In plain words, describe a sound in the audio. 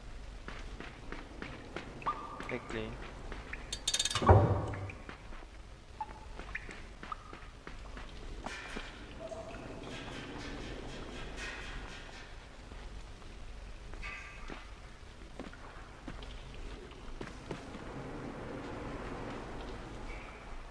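Light footsteps patter quickly.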